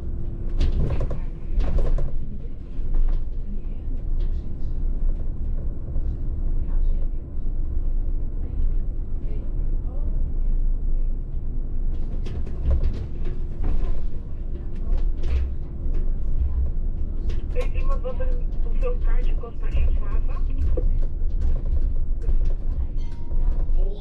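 A bus engine hums low and steady from inside the cab.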